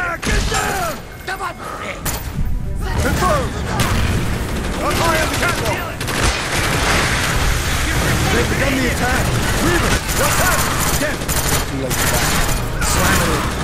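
A rifle fires in rapid bursts with loud sharp cracks.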